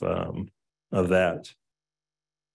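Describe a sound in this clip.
A man briefly speaks into a microphone.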